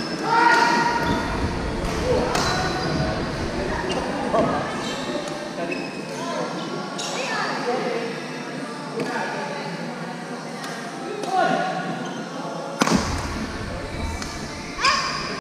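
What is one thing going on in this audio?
Young girls call out to each other during play.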